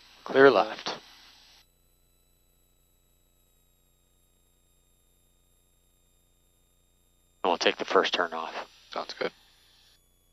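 A man speaks calmly over a headset intercom.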